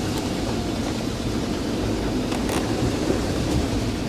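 Tyres splash through deep running water.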